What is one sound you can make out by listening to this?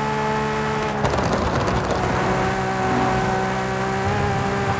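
A racing car engine drops in revs as the car slows.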